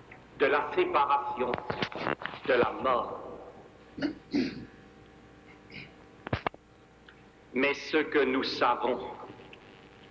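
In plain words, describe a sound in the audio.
An elderly man speaks slowly and solemnly through a microphone in a large echoing hall.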